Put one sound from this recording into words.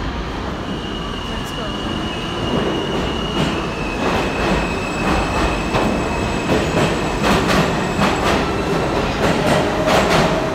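Train brakes squeal with a high steady whine.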